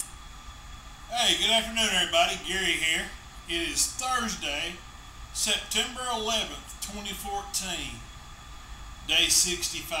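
A middle-aged man talks casually and close to a microphone.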